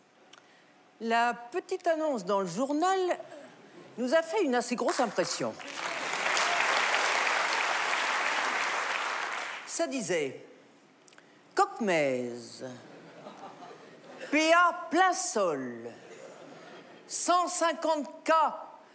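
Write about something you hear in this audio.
A middle-aged woman reads aloud expressively into a microphone.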